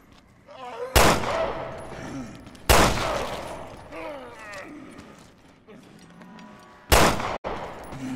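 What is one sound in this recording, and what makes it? A pistol fires loud, sharp shots that ring in a hallway.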